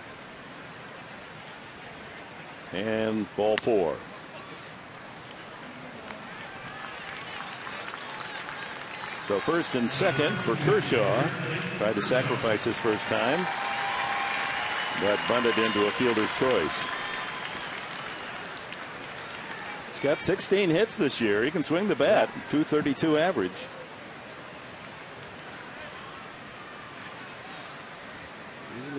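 A large crowd murmurs outdoors.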